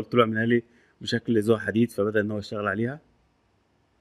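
A man speaks calmly into a microphone, close up.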